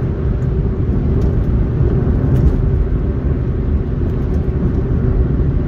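Tyres roll on asphalt with a low, steady rumble.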